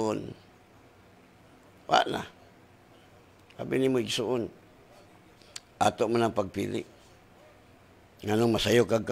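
A middle-aged man speaks slowly and calmly into a close microphone, with long pauses.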